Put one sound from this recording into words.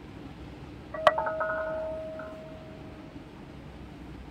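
A bright electronic chime rings out once and fades.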